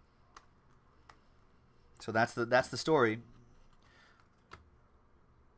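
Trading cards click and slide as they are shuffled.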